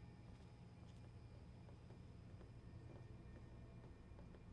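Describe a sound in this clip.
Footsteps clank on a metal grating floor.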